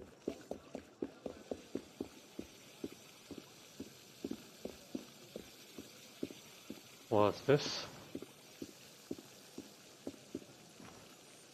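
Footsteps tap on cobblestones at a steady pace.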